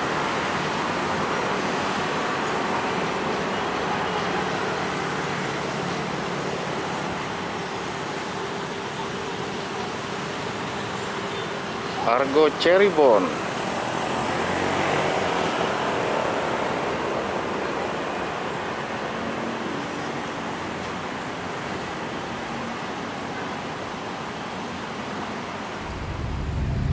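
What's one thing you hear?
A passenger train rumbles slowly along the tracks and rolls away.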